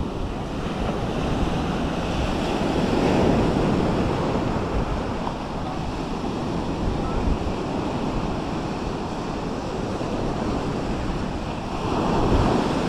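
Small waves wash steadily onto a sandy shore.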